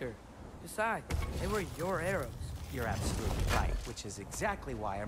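A heavy chest lid grinds open with a deep rumble.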